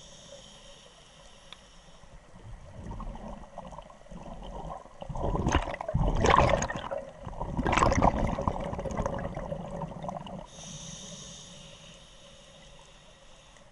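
Air bubbles from scuba divers gurgle and rush in bursts underwater.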